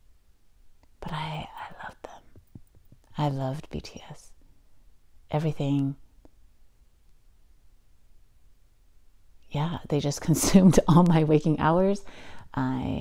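A young woman speaks calmly and close into a microphone, with pauses.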